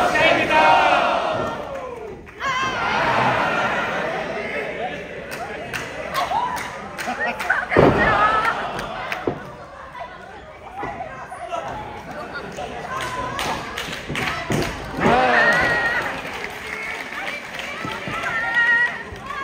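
Young women shout loudly in a large echoing hall.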